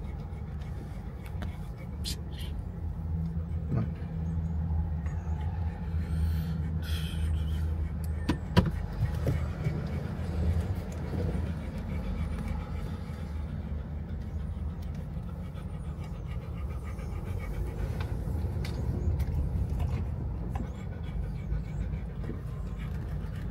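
A car engine rumbles low and steadily from inside a moving car.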